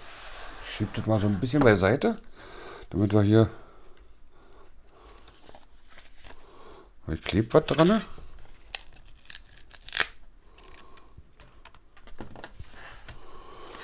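Paper crinkles and rustles as cards are handled.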